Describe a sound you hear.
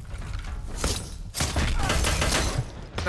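A shotgun fires with loud booms.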